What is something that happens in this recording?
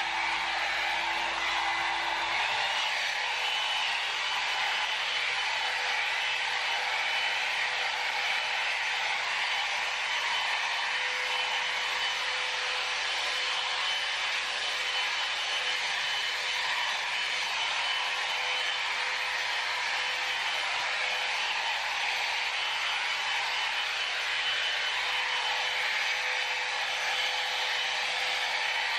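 A hot air brush blows with a steady whir close by.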